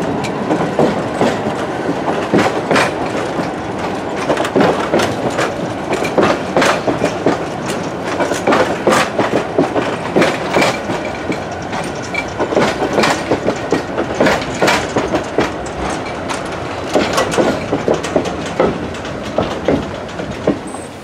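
Train wheels clack over rail joints in an uneven rhythm.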